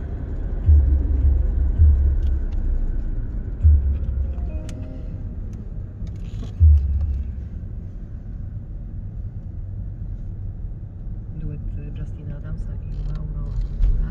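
A car drives along a road with a steady low rumble from inside the cabin.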